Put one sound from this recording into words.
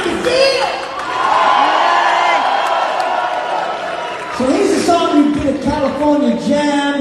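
A rock band plays loudly through large loudspeakers.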